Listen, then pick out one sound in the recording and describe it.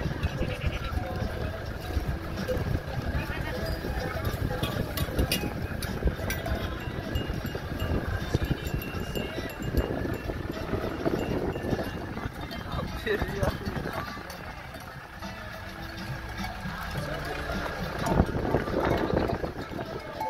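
A herd of goats clatters its hooves on an asphalt road.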